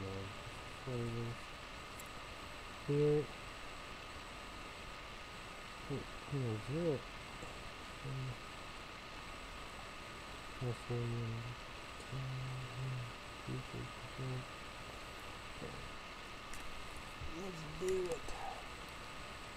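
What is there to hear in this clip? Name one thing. A young man speaks quietly and calmly close by, in short phrases.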